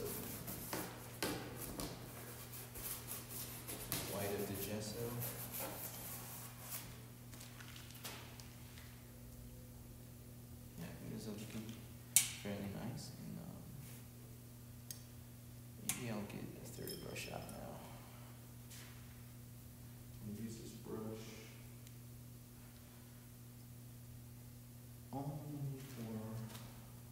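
A paintbrush dabs and scrapes on canvas.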